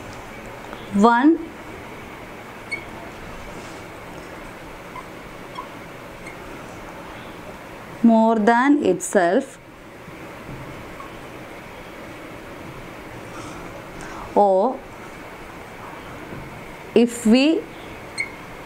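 A young woman speaks calmly in short phrases, close to a microphone.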